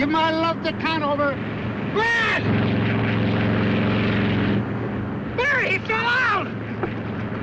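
A man shouts in alarm close by.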